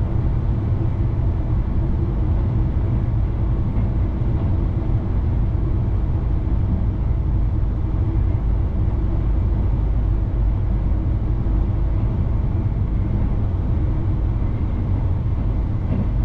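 A train rumbles steadily along the rails at speed.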